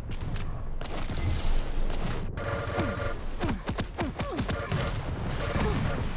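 An electric weapon crackles and buzzes in rapid bursts.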